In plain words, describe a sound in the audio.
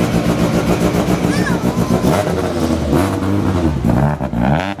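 A rally car engine idles loudly and revs nearby.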